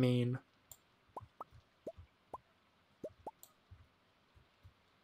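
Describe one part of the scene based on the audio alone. Small soft pops sound as items are picked up one after another.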